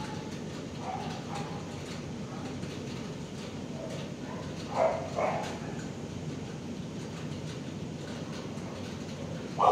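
A dog breathes slowly in its sleep.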